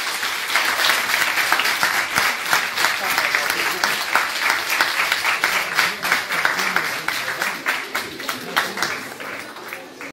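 A small audience claps steadily, fading slightly toward the end.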